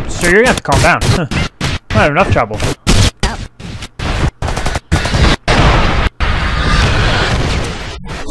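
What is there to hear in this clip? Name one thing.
Gunfire rings out in quick, loud bursts.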